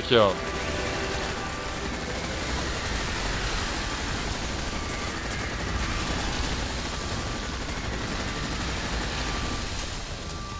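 Rapid gunfire rattles and booms steadily.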